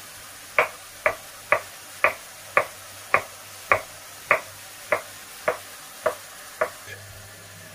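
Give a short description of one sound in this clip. A knife chops on a wooden board in quick, even knocks.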